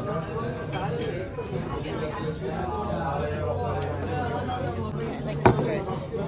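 Men and women chat in the background of a busy room.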